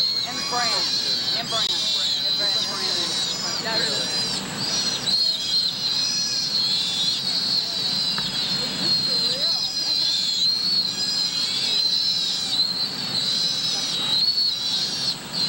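A sea otter pup squeals in high, piercing cries.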